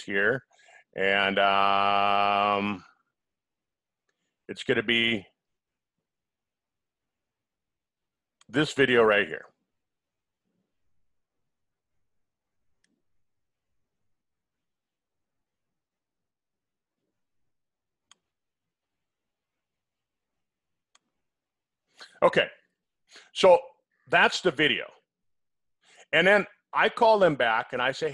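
An older man speaks calmly into a headset microphone, in short bursts with long pauses.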